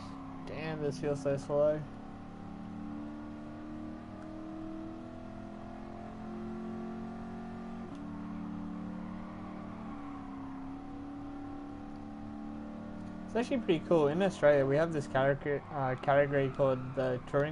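A car engine hums steadily at high revs, its pitch shifting slightly with gear changes.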